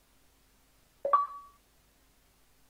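A short bright electronic notification chime sounds once.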